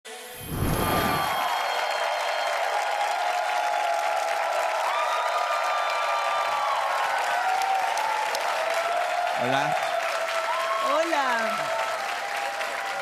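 A large audience cheers and whistles.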